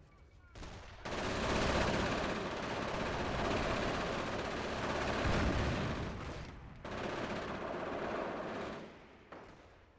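Explosions boom one after another.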